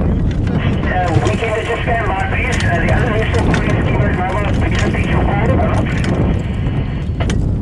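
A man calls out nearby.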